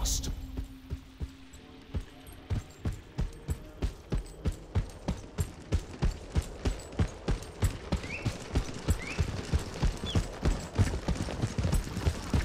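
Quick footsteps patter steadily on hard ground.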